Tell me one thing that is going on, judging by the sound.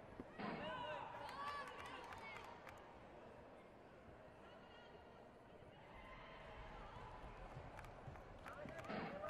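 Spectators shout and cheer in a large echoing arena.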